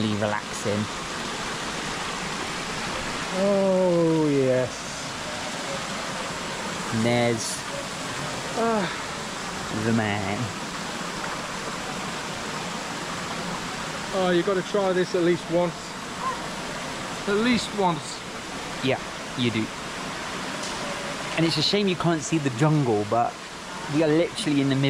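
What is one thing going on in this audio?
A middle-aged man talks close up with animation.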